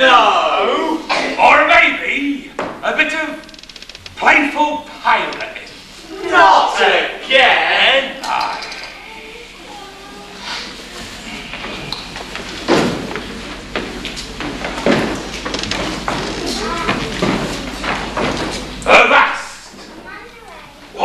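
A man speaks loudly and theatrically in a large echoing hall.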